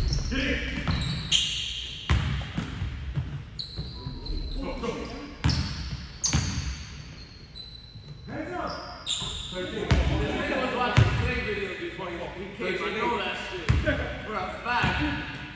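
Sneakers squeak sharply on the hardwood floor.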